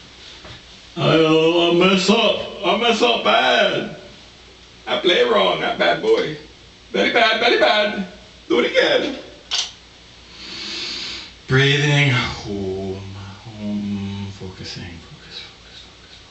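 An older man speaks calmly and expressively into a close microphone.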